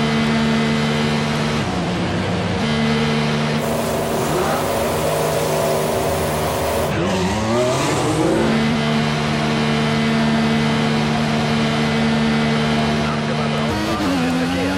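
A racing car engine hums steadily at a low, held speed.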